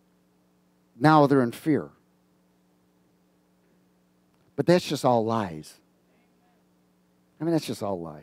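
A middle-aged man speaks with animation through a headset microphone, in short bursts with pauses.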